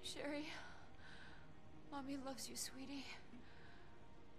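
A woman speaks softly and weakly, close by.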